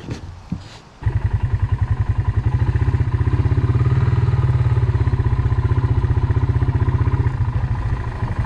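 An all-terrain vehicle engine chugs steadily as it drives along.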